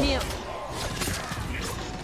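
Swords clash with metallic impacts.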